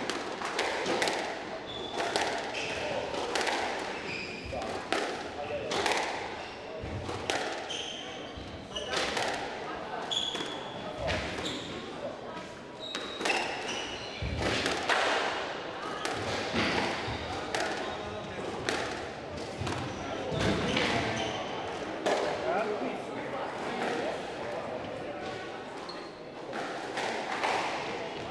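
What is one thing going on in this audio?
A squash ball smacks sharply against the walls, echoing in a large hall.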